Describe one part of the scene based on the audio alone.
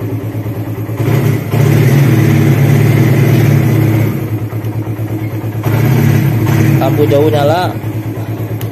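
A motorcycle engine revs up and settles back.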